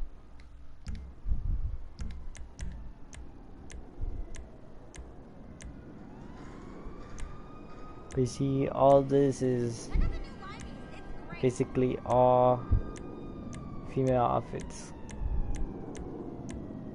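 Soft menu clicks tick at a quick, even pace.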